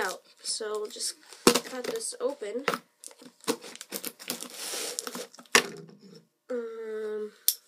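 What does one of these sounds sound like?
A knife scrapes and cuts through cardboard tape.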